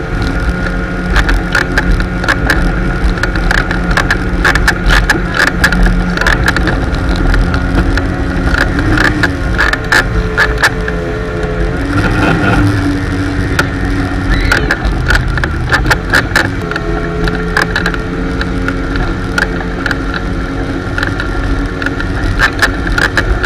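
Water churns and splashes behind a boat.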